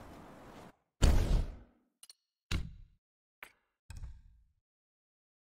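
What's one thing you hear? Menu clicks sound in quick succession.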